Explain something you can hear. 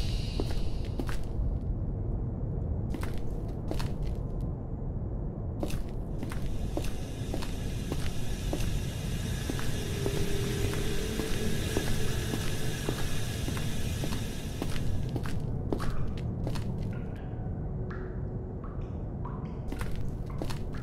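Footsteps tread steadily on a hard floor.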